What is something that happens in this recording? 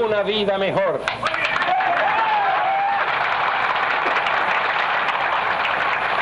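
A large crowd cheers and applauds outdoors.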